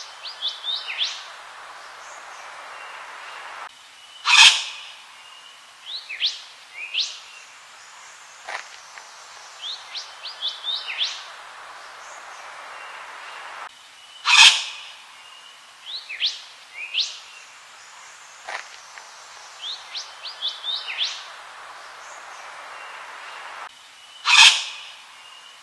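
A bird sings loud, harsh, raspy calls with sharp whistled notes, repeating in a looping pattern.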